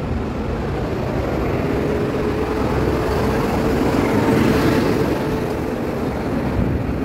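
A lorry's engine roars as the lorry passes close by.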